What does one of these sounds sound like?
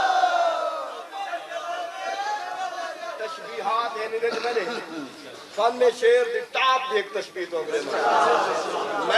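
A man speaks with animation into a microphone.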